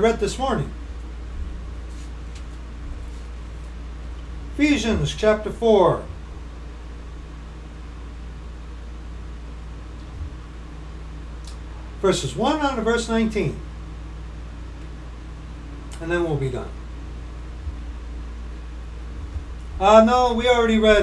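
A middle-aged man speaks in short bursts close to a microphone.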